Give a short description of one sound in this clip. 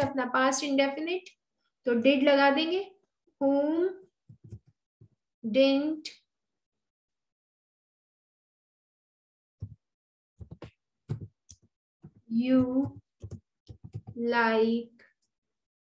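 A young woman speaks calmly into a microphone, pausing now and then.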